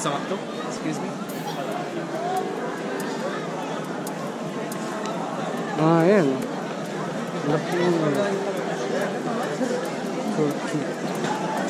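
A crowd of people chatters outdoors all around.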